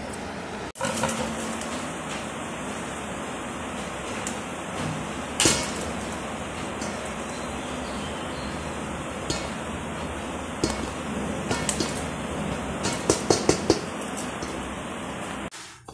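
A metal sieve taps and rattles against a metal bowl.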